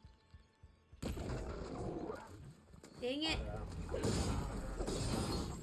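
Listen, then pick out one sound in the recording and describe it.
A large mechanical beast growls and stomps close by.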